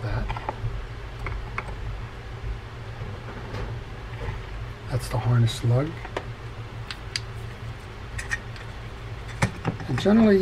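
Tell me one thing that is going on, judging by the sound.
Small metal parts click and rattle as they are handled.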